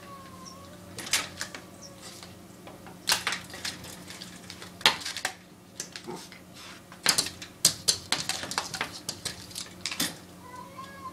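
A cat's claws tap and scratch against a window pane.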